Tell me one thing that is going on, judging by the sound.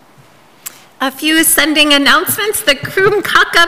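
A woman speaks calmly into a microphone in a room with a slight echo.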